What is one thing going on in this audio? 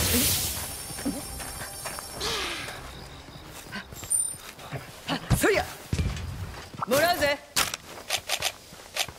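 Footsteps crunch on rough ground.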